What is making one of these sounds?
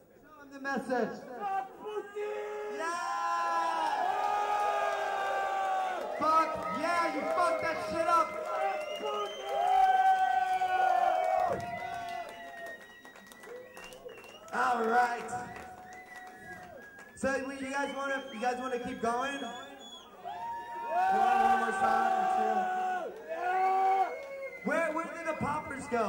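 A man sings loudly into a microphone, heard through loudspeakers.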